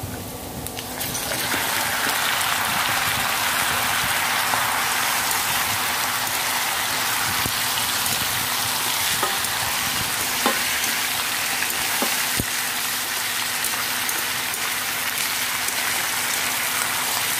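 Raw meat drops into hot oil and sizzles loudly and steadily.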